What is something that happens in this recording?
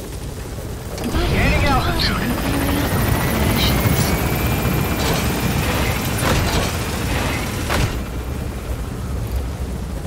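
Fires crackle and burn nearby.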